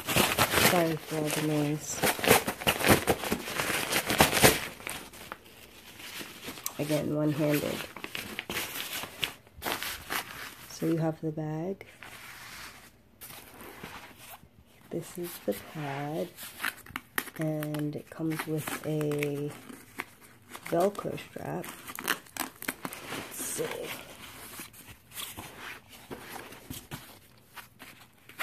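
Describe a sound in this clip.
Nylon fabric rustles and crinkles as it is handled.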